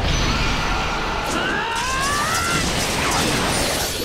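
A deep rumbling blast roars and swells.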